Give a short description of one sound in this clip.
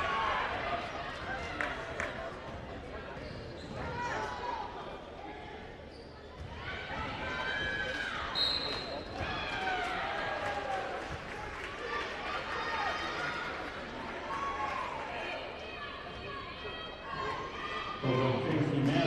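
Sneakers squeak sharply on a wooden court.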